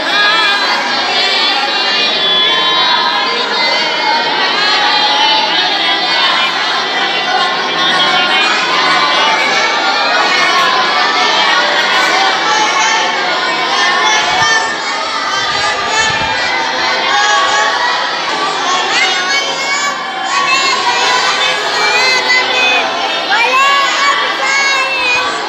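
Many boys recite aloud together in overlapping chanting voices, close by.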